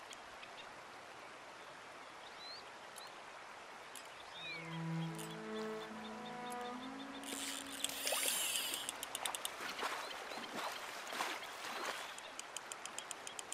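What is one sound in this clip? A river flows and gurgles steadily.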